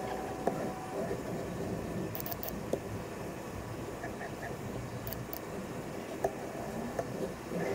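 Metal parts clink against each other.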